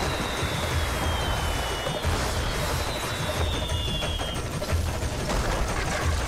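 Fireworks crackle and burst.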